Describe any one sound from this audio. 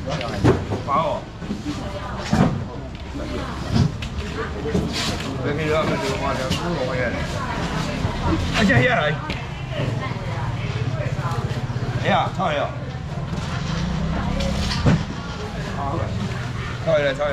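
A middle-aged man talks nearby with animation.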